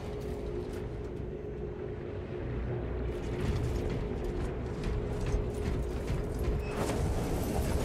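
Heavy metal footsteps clank on a metal floor.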